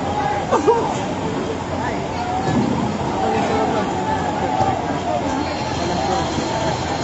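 A crowd of people shouts and calls out nearby, outdoors.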